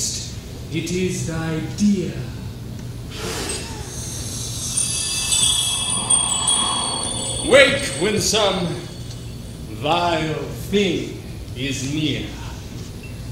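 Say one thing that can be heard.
A young actor speaks loudly and expressively on a stage.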